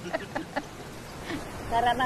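An elderly woman laughs.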